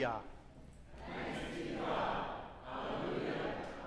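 A congregation murmurs a spoken response together.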